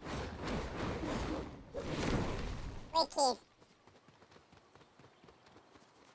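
A fireball whooshes through the air.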